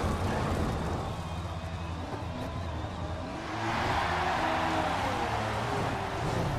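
Gravel sprays and rattles under the tyres.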